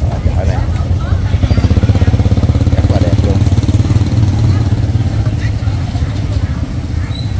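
A motorbike engine putters nearby.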